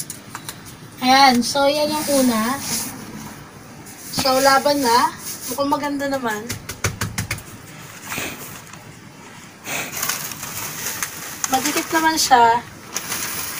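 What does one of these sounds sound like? A woman speaks in short phrases close by.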